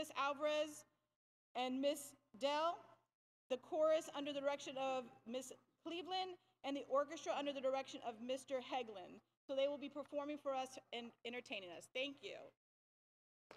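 A woman speaks calmly into a microphone over loudspeakers in a large hall.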